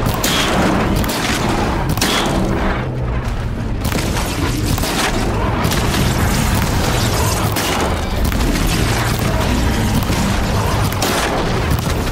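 Explosions boom in bursts.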